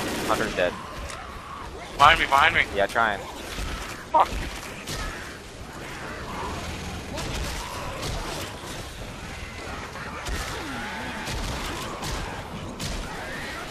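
Zombies snarl and shriek.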